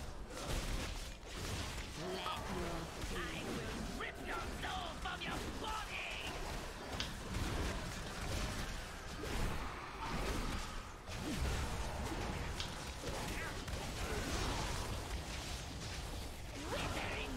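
Magic spells crackle and weapons strike in a busy fantasy battle.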